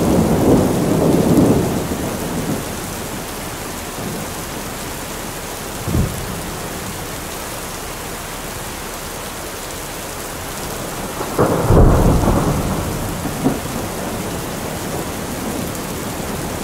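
Heavy rain pours steadily, drumming on a metal roof.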